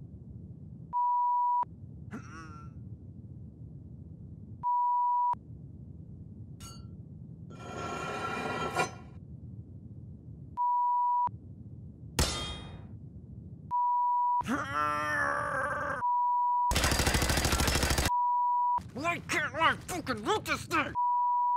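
A steady high test tone beeps on and off repeatedly.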